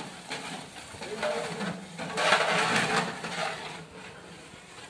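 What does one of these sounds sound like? A ladle stirs and scrapes in a large metal pot.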